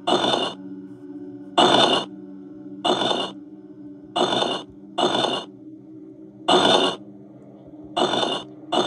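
A video game plays a loud hissing burst over and over.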